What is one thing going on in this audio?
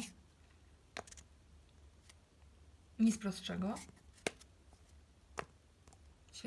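A plastic bottle cap clicks.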